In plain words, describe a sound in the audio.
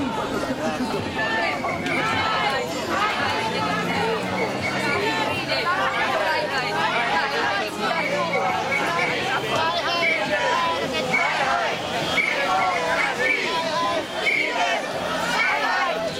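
A large crowd of men and women chatter all around outdoors.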